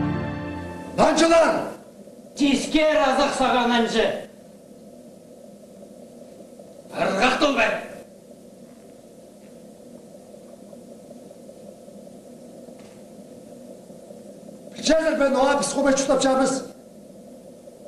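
A man declaims loudly in short bursts from a stage.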